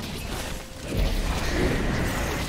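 A deep booming impact erupts.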